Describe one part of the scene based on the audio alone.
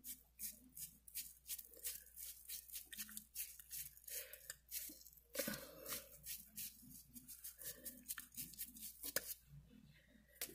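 A towel rubs and dabs against skin with soft scratchy sounds.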